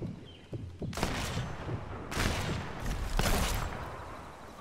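Leaves and brush rustle as someone crawls through bushes.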